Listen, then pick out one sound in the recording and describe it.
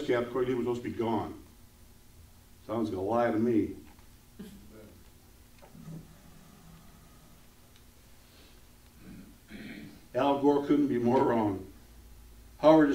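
A middle-aged man speaks calmly and deliberately in a room with a slight echo, pausing between phrases.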